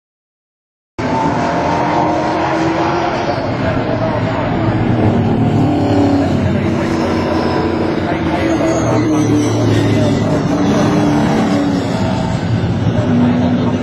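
Racing car engines roar loudly as the cars speed around a track.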